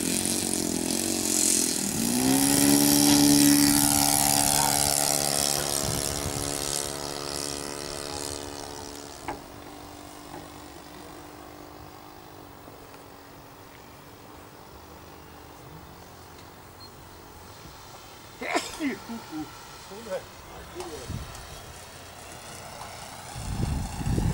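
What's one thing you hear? A model plane's engine buzzes loudly as it speeds up and takes off, then drones more faintly as the plane flies away.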